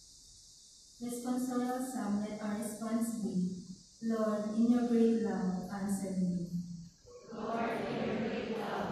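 A man sings through loudspeakers in a large echoing hall.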